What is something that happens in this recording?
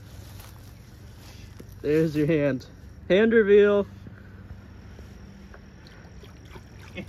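A shallow stream trickles softly.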